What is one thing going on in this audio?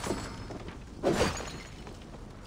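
A jar crashes and breaks.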